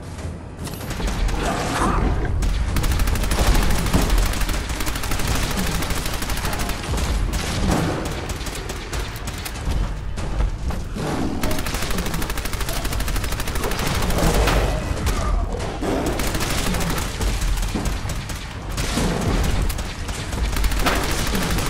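A heavy gun fires rapid bursts of shots.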